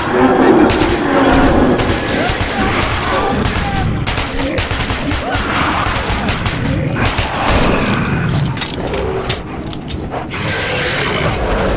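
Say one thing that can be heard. A mounted machine gun fires.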